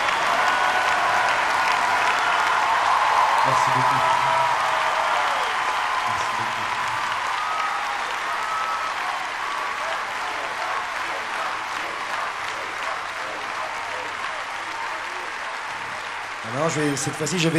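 A large crowd cheers and whistles loudly in a big echoing hall, then slowly fades.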